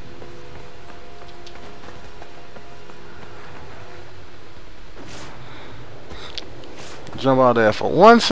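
Footsteps run over cobblestones.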